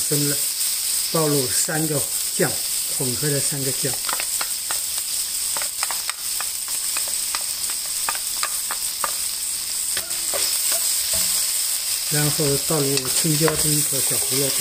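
A wooden spatula scrapes and taps against a metal pan.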